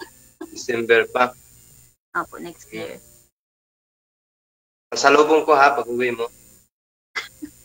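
A man talks animatedly into a studio microphone.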